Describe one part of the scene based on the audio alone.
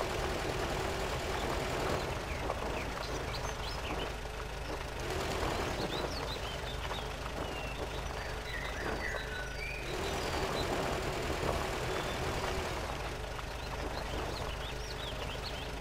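A vehicle engine rumbles steadily while driving over rough ground.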